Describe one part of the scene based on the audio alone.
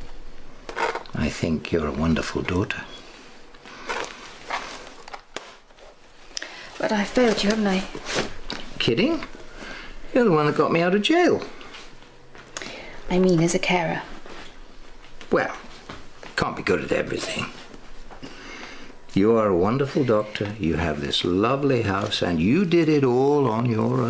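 An older man talks calmly, close by.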